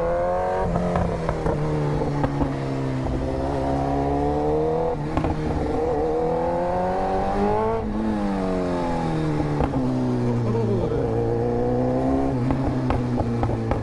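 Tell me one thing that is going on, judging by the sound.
A motorcycle engine hums close by, its pitch rising and falling as the rider speeds up and slows down.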